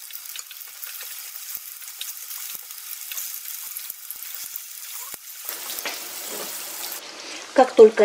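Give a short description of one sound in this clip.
Meatballs sizzle in hot oil in a frying pan.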